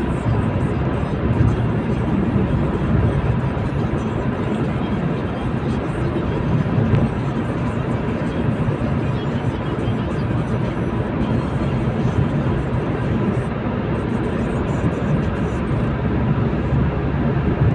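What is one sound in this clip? Tyres roar on the road, echoing in a tunnel.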